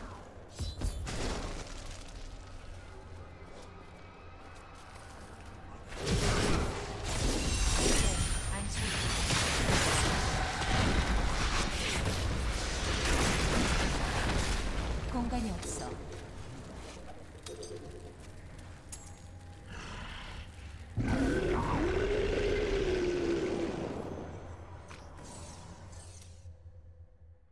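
Magic spells burst and crackle in a fantasy game battle.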